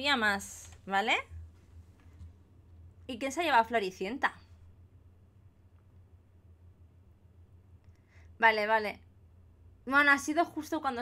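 A woman talks with animation into a close microphone, in short bursts.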